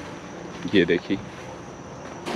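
A man speaks briefly.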